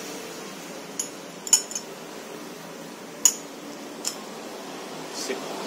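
Metal parts clink and tap together.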